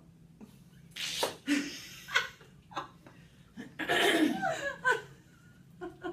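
Two women laugh together close to microphones.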